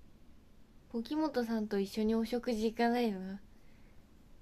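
A young woman speaks softly and brightly, close to a microphone.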